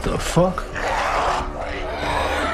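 A man snarls and groans hoarsely.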